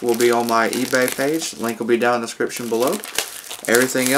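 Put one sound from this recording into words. Plastic shrink wrap crinkles as it is torn off a cardboard box.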